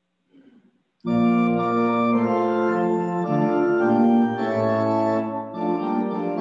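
A woman plays an organ.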